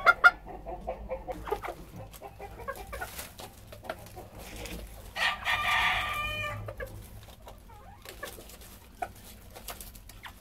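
Chickens cluck and squawk.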